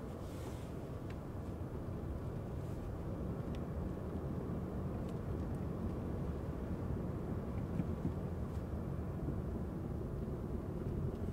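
A car engine rumbles low and steady, heard from inside the car.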